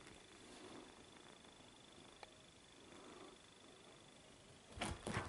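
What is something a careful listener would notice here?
A kitten's paws patter softly on a cushioned sofa.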